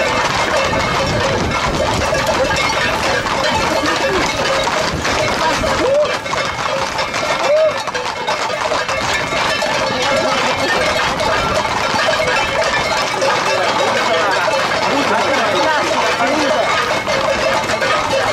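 A crowd of men shout and cheer outdoors.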